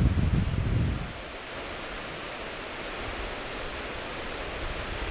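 Wind blows steadily through trees, rustling the leaves, with a strong gust at first.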